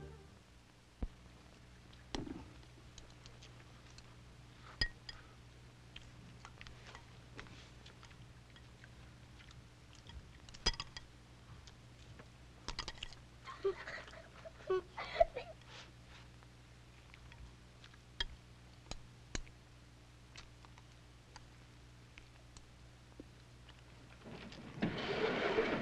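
Chopsticks click against bowls.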